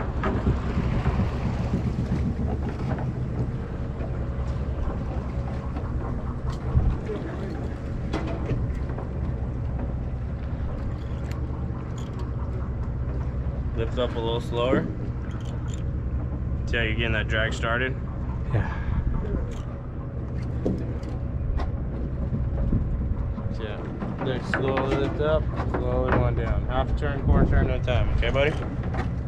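Water rushes and splashes along the side of a moving boat.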